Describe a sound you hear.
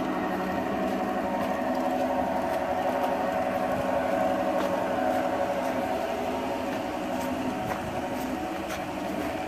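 A model train hums steadily along its track.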